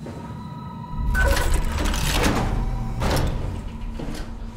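A heavy metal hatch door slides open with a loud mechanical hiss and clank.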